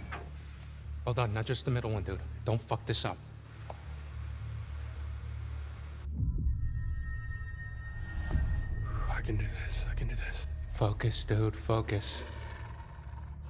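A young man speaks tensely in a low voice, close by.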